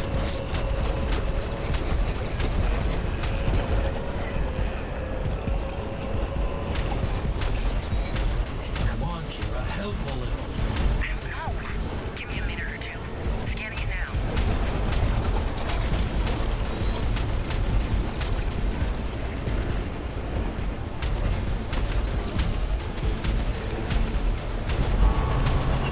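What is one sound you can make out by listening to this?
A racing engine roars at high speed.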